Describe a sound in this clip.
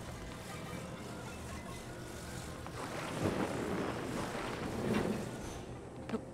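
A low magical hum buzzes as objects float and move.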